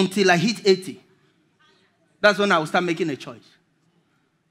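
A man speaks with animation through a headset microphone.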